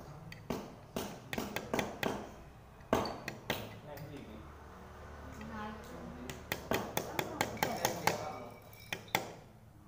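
A hammer taps a blade down into a bamboo stick.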